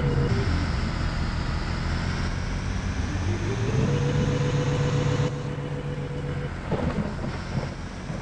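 A heavy truck engine rumbles and revs as the truck drives.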